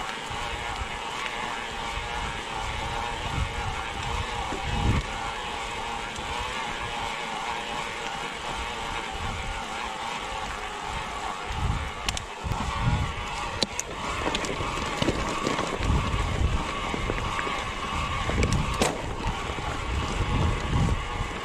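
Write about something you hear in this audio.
Wind rumbles against the rider.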